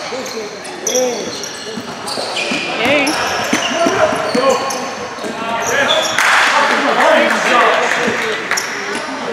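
Young men shout and call out during play in an echoing hall.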